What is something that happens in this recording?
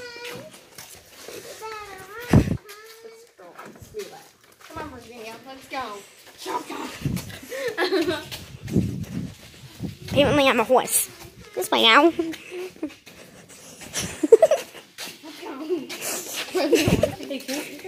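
Footsteps scuff on a dusty floor.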